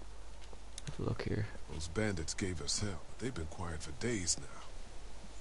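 A man speaks calmly and wearily, close by.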